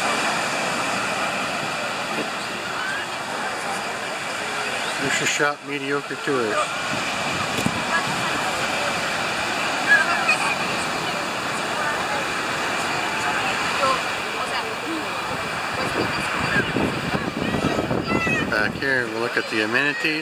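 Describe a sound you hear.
Children and adults chatter and call out across an open beach.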